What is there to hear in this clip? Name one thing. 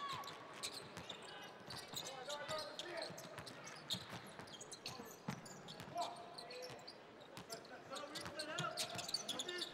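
A crowd murmurs in a large arena.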